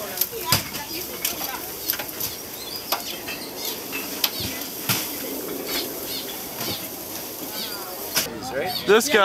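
Meat sizzles and crackles on a grill.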